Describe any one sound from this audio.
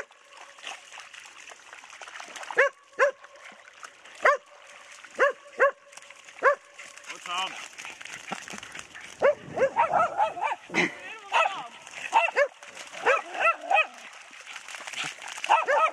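Dogs splash through shallow water.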